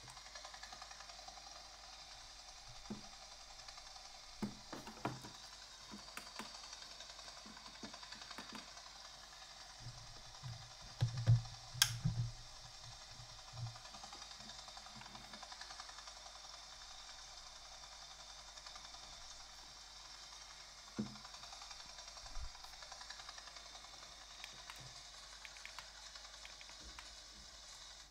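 Wind blows steadily through a small, tinny speaker.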